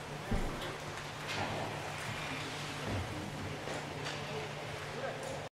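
Roller skate wheels roll and scrape on a hard floor in a large echoing hall.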